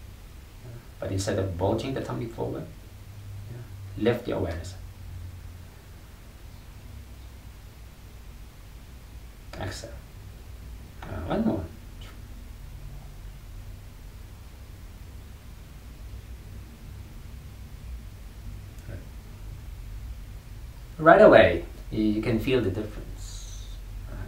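A young man speaks calmly and slowly, close by, with long pauses.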